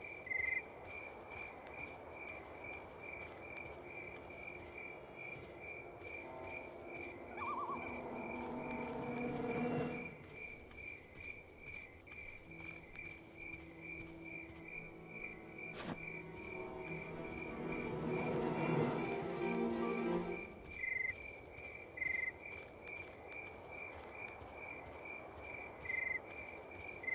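Footsteps tread steadily on gravel.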